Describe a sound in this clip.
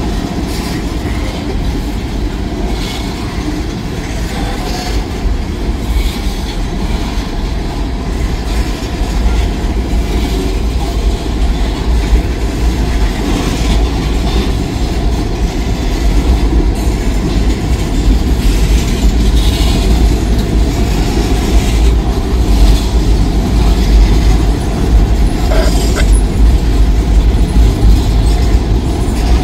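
Train wheels clack and squeal on the rails.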